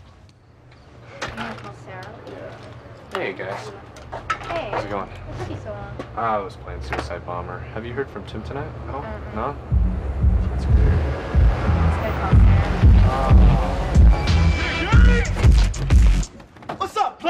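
Young men talk with each other.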